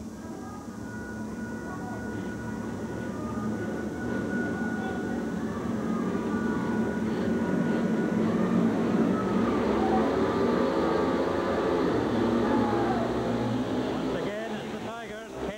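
Several motorcycle engines rev loudly and rise to a roar.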